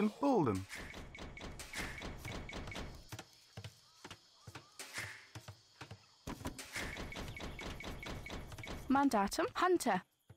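Small game figures work with quick, repeated knocking and tapping sounds.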